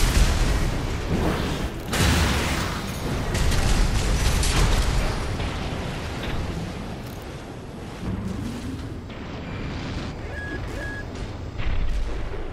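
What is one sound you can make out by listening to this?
Explosions blast and roar.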